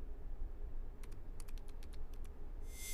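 Keys click softly on a laptop keyboard.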